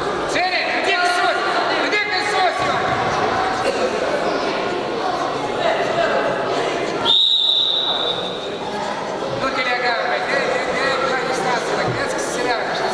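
A crowd of spectators shouts and cheers in an echoing sports hall.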